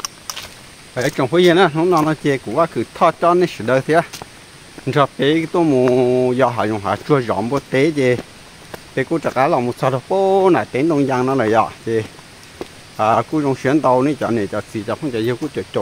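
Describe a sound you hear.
A young man talks calmly, close to the microphone.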